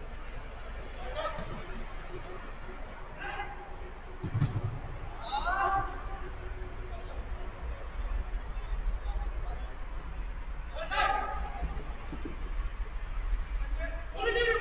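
Men shout to each other from a distance across a large open space.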